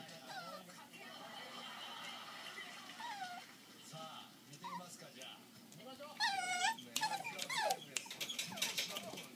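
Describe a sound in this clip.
Puppies whine and yelp in high, short cries.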